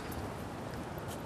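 A car pulls up slowly at the kerb.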